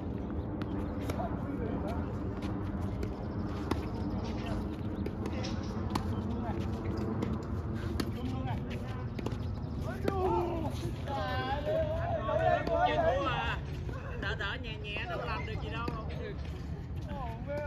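A racket hits a ball outdoors.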